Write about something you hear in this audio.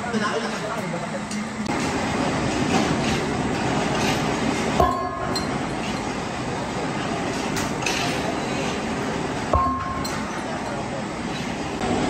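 Heavy workshop machinery rumbles steadily.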